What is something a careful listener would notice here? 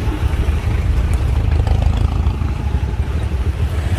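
A motorcycle engine hums as it rides past.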